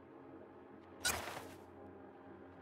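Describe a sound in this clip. A game menu gives a sharp whoosh as it switches.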